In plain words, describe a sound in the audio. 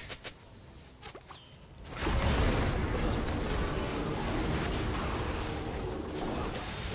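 Spell effects burst and crackle as game characters fight.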